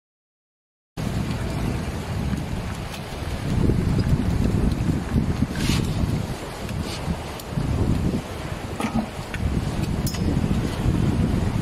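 Water rushes and splashes against the side of a moving boat.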